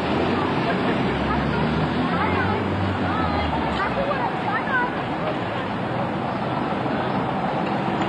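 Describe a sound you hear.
A bus engine rumbles as the bus pulls away along a street.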